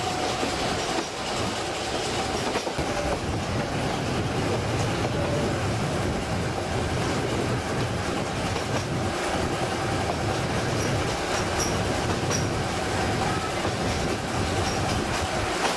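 A small train rumbles and clatters steadily along its track.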